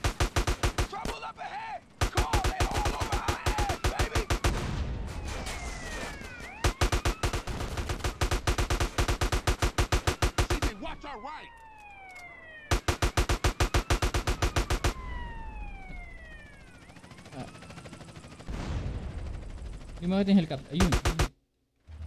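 Rapid bursts of automatic gunfire ring out.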